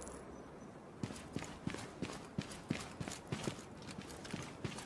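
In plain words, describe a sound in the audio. Footsteps tread quickly over the ground.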